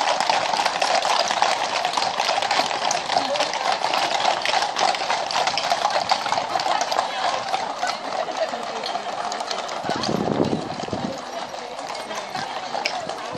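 Many horses' hooves clop steadily on a paved road.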